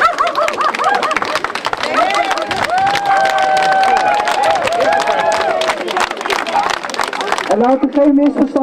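A crowd sings together outdoors.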